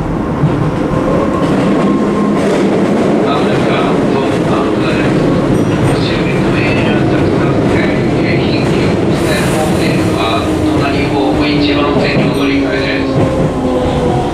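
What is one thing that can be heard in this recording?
Steel wheels squeal on the rails.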